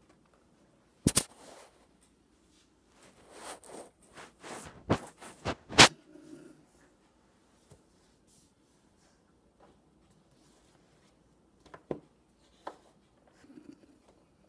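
A brush knocks and taps against a wooden easel.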